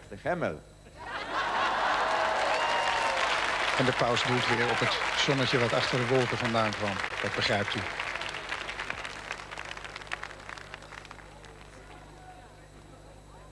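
A large crowd applauds and cheers outdoors.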